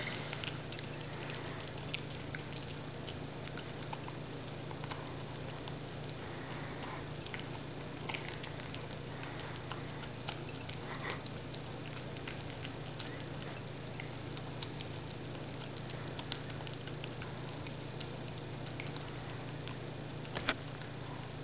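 A dog eats noisily, licking and chewing.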